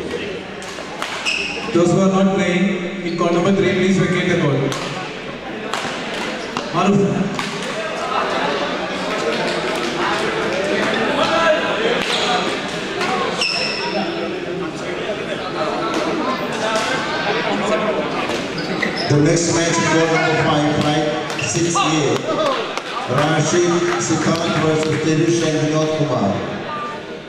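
Badminton rackets strike a shuttlecock with sharp pops in a large echoing hall.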